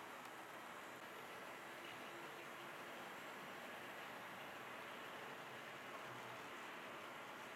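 A model train rumbles and clicks along the track.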